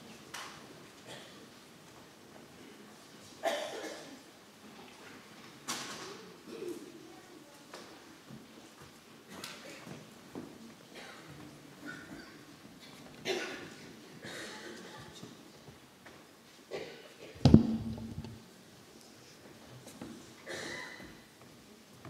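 People shuffle and move about in their seats.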